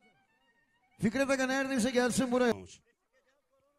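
A clarinet plays a short loud phrase.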